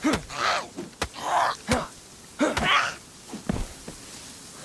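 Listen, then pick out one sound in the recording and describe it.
A wooden bat strikes a body with dull thuds.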